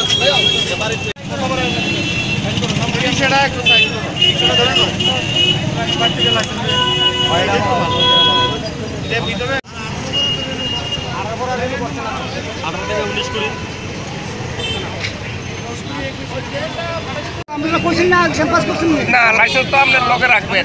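Several men talk nearby at once in a busy crowd.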